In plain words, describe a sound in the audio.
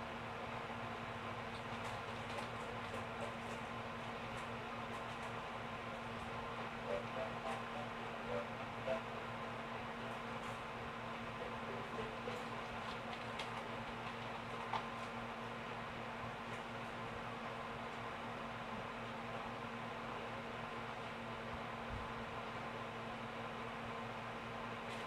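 Video game music and effects play quietly through a television's speakers.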